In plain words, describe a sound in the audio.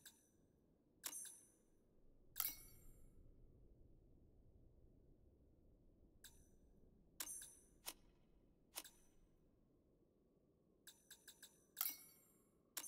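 A whooshing menu sound sweeps by now and then.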